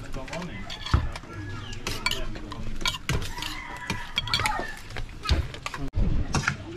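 Men talk casually nearby, outdoors.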